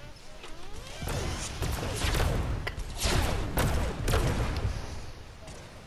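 Footsteps thud quickly on a hard floor.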